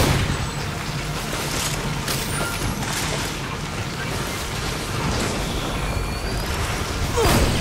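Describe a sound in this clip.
Gunfire and impacts crackle in short bursts.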